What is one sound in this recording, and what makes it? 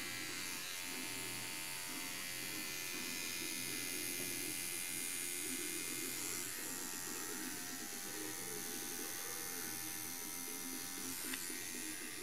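A tattoo machine buzzes steadily close by.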